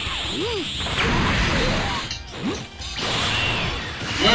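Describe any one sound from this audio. An energy blast roars and crackles.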